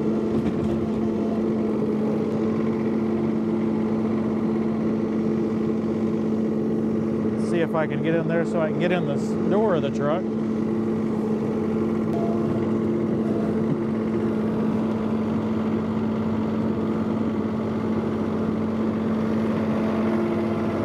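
A tractor engine hums steadily as it drives over snow.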